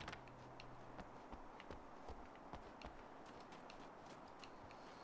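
Footsteps thud quickly across a wooden floor.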